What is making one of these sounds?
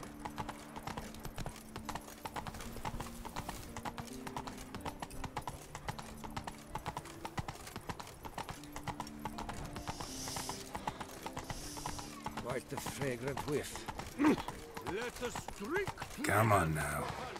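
Horse hooves clop quickly on stone.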